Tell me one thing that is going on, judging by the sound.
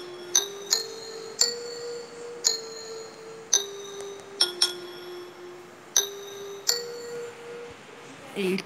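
Xylophone notes ring out one at a time in a simple tune.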